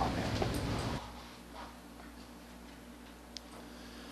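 A man speaks calmly through a microphone in a small echoing hall.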